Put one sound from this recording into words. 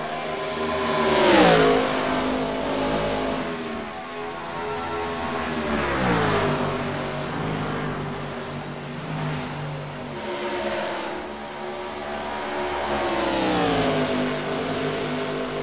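Race cars whoosh past close by, their engine pitch dropping as each one goes by.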